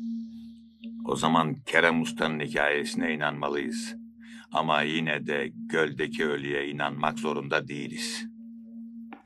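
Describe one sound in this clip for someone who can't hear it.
An elderly man speaks calmly and closely.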